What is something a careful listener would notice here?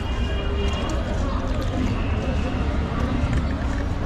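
Liquid splashes as a ladle pours it into a cup.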